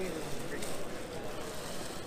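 Plastic bags rustle and crinkle under a hand.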